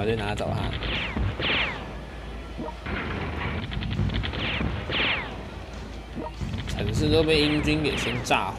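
Tank guns fire with booming blasts.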